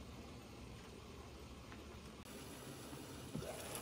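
Vegetables simmer and bubble in a covered frying pan.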